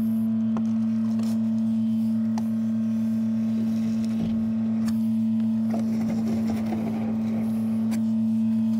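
Liquid gurgles and slurps into a suction hose.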